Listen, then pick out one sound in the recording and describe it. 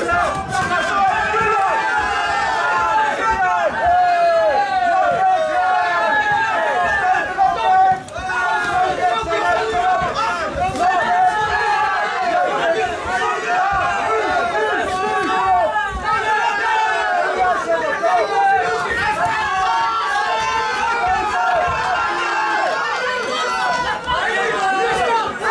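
A crowd shouts and cheers indoors.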